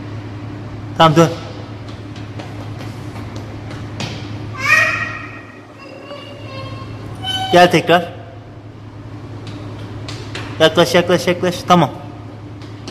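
A toddler squeals and babbles in a high voice.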